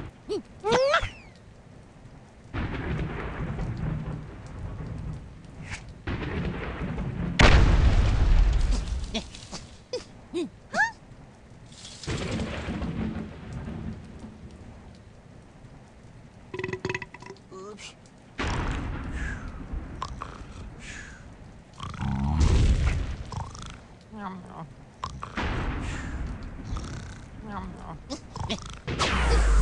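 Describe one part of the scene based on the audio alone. Game sound effects crash and boom in short bursts.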